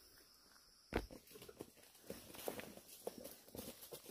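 Footsteps rustle through grass and dry leaves.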